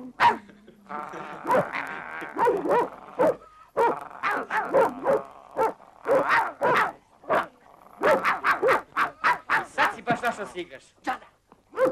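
A dog growls and snarls.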